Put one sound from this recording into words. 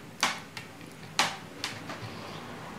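A seashell clicks against wood.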